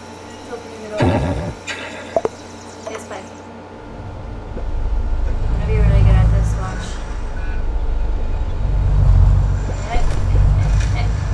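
A young woman talks casually close to a microphone.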